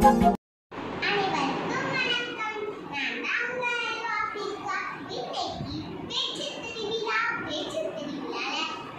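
A young girl speaks with animation close to a microphone.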